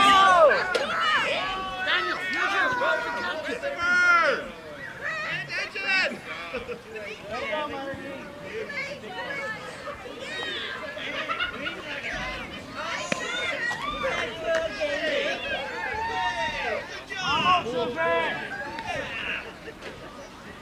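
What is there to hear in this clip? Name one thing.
Young girls cheer and chant loudly nearby, outdoors.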